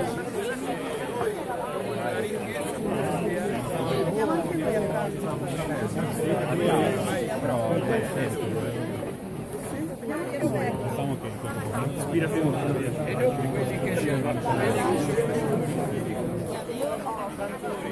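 Rain patters on umbrellas.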